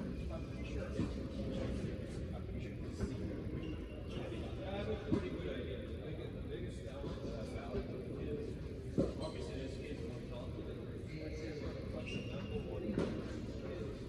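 Tennis balls are struck with rackets now and then, echoing in a large indoor hall.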